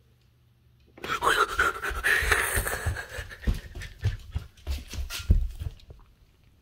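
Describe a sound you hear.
A cat scrambles and scuffles across a wooden floor, close by.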